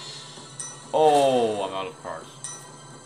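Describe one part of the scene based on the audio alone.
A bright electronic chime rings out to start a turn.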